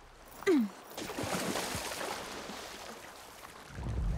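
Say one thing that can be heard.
A body splashes into water.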